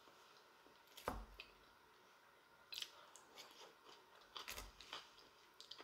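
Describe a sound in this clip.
A fork scrapes and clinks against a bowl.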